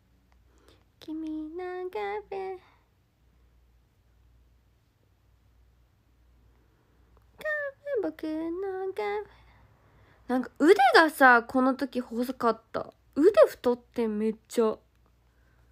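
A young woman speaks softly and cheerfully close to a microphone.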